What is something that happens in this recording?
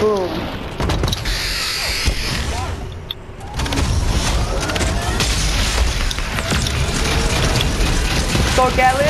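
Video game sound effects whoosh and thump.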